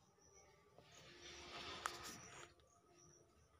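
Fabric rustles softly between fingers.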